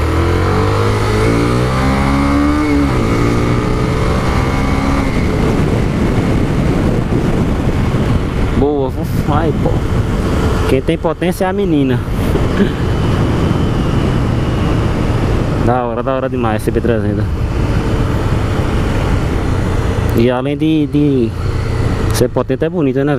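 A single-cylinder Honda CB 300 motorcycle engine runs as the bike rides along a road.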